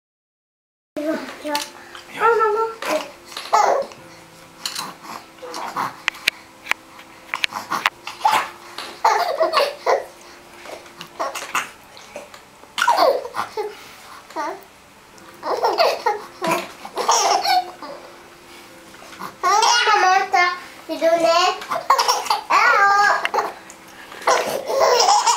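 A baby coos and giggles close by.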